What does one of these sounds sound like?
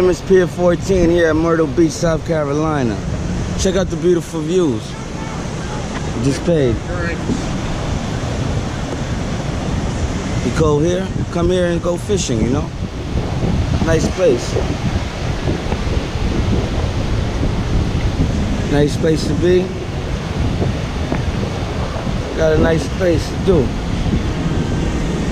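Waves wash steadily onto the shore.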